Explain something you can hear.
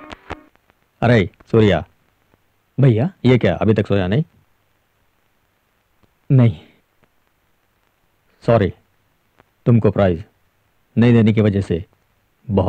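A man speaks in a calm, low voice close by.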